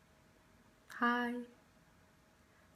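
A young woman sings a short phrase close by.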